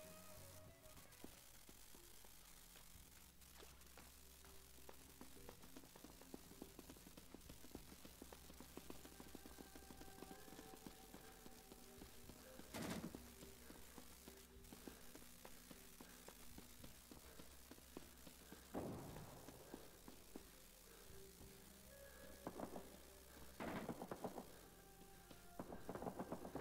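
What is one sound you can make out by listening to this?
Footsteps tread quickly over hard ground.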